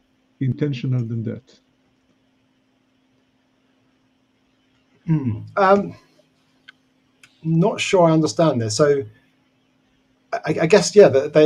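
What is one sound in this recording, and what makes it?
Men talk in turns over an online call.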